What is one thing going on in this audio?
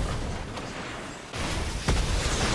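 A gun fires rapidly in a video game.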